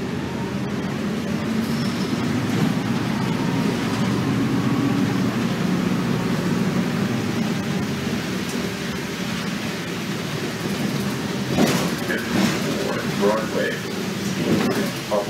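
A bus rattles and clatters as it moves.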